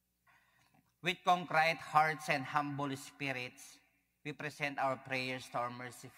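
A man speaks calmly through a microphone, echoing in a large hall.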